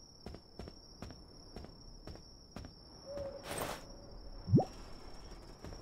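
Footsteps tap along a path.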